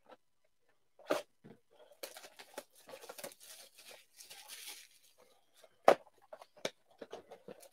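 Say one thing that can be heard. A cardboard box knocks and rustles as it is handled on a counter.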